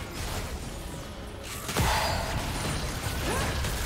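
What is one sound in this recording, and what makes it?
Video game fight effects whoosh and clash.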